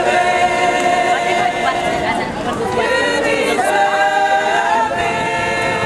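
A group of women sing together outdoors, close by.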